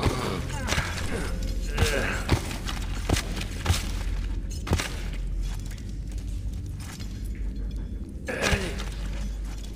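Footsteps thud slowly on loose dirt.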